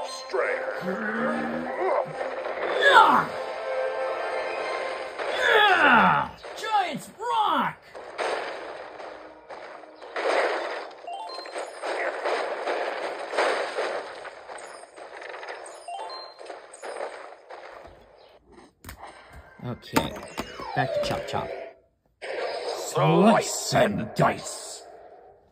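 Video game music and sound effects play from a television speaker.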